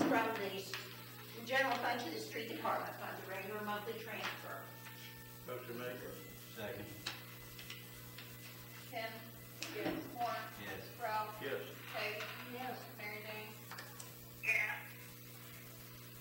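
Several adults talk calmly, heard from a distance in a room.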